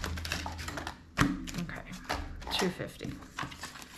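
Paper banknotes rustle as hands handle them.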